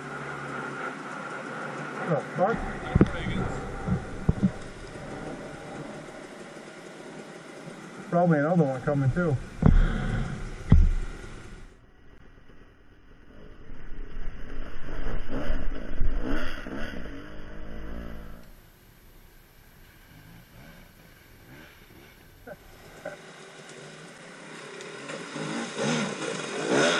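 A dirt bike engine revs nearby.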